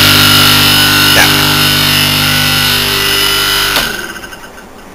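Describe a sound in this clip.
An electric compressor motor hums loudly and steadily, then stops.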